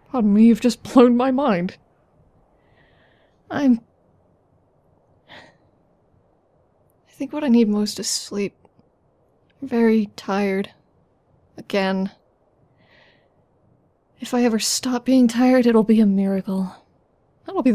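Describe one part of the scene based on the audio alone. A woman talks softly and close by, with feeling.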